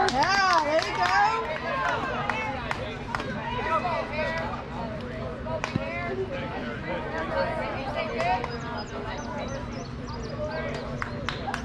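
Men and women call out and cheer nearby outdoors.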